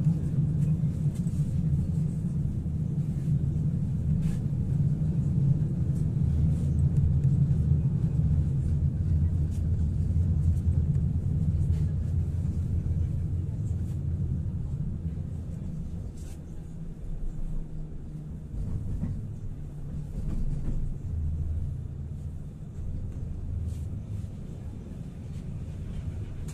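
A tram rumbles steadily along its rails, heard from inside.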